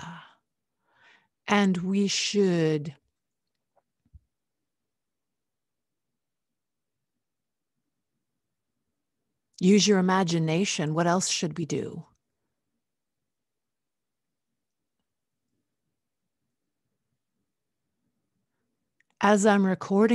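A woman speaks slowly and expressively into a close microphone, in short bursts with long pauses.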